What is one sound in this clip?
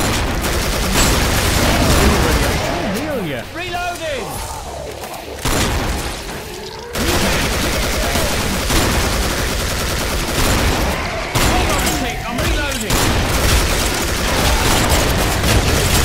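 Guns fire in rapid, loud bursts.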